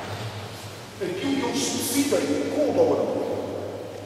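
A man speaks through a microphone and loudspeaker in a large echoing hall.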